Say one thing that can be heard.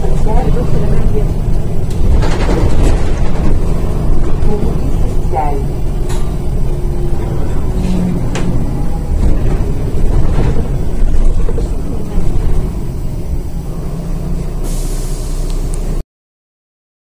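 A bus engine rumbles steadily from inside the vehicle.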